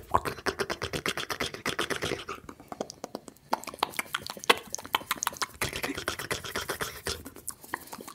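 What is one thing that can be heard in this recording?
A man whispers very close to the microphone.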